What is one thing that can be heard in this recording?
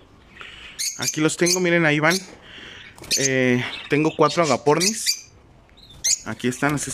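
Small parrots chirp and squawk loudly nearby.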